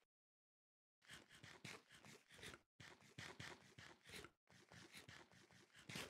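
A character chews and munches food in a video game.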